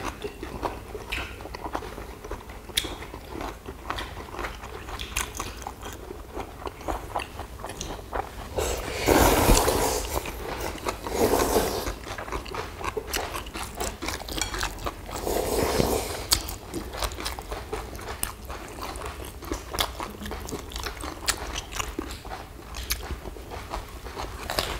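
Chopsticks click against bowls.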